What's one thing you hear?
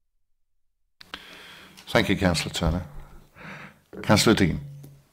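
A man speaks formally into a microphone, close by.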